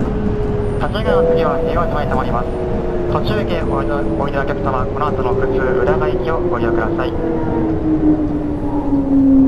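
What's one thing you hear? A train's electric motor whines and slowly falls in pitch as it slows down.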